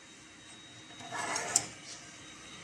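A metal buckle clinks as a strap is lifted out of a machine.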